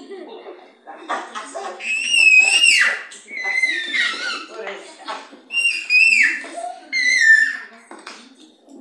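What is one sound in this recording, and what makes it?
A young boy shrieks and laughs excitedly close by.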